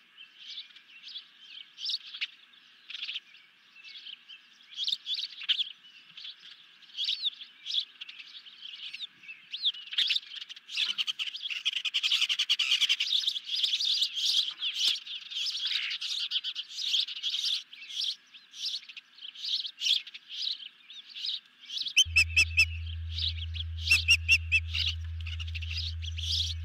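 An osprey gives high, whistling chirps close by.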